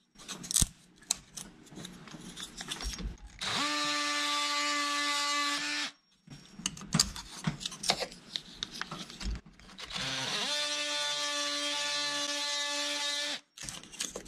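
Small knocks and rattles come from a tool being handled.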